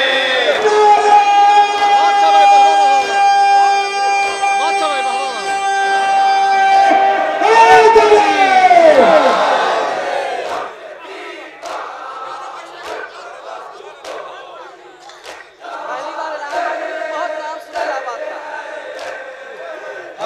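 Men beat their chests with their hands in rhythm.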